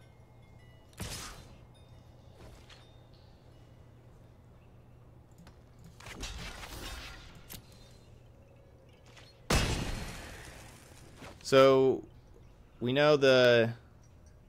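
Electronic game sound effects whoosh and chime.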